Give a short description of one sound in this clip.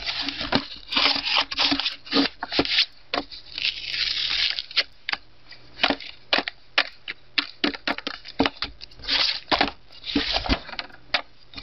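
Pages of a book rustle as a hand flips them.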